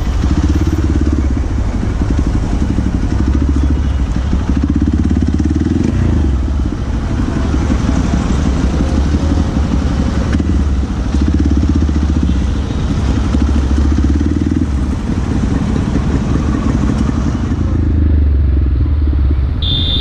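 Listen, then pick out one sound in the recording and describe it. A motorcycle engine rumbles and putters up close.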